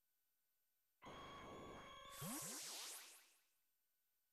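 A flying creature cries out with a shrill screech.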